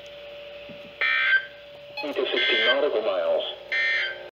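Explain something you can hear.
Radio receivers give out short electronic beeps.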